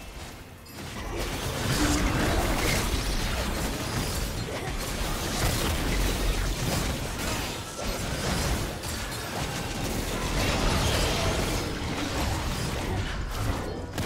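Spell blasts, hits and explosions crackle and boom in a game battle.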